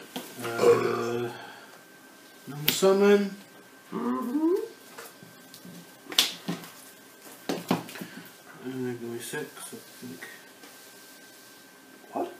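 Playing cards are laid down and tapped onto a soft mat.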